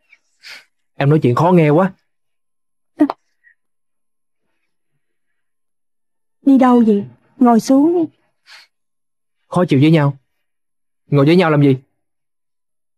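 A young man speaks quietly and earnestly, close by.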